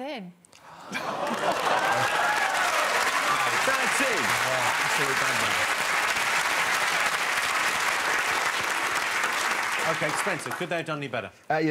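A studio audience applauds and cheers loudly.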